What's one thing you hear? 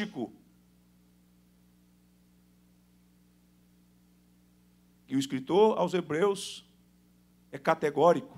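A man speaks with animation into a microphone, pausing between phrases.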